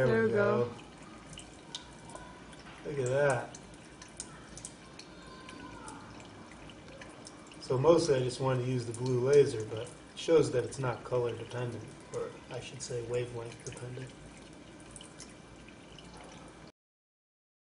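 Water pours in a thin stream and splashes.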